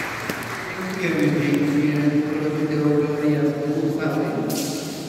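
A mixed choir begins to sing in an echoing hall.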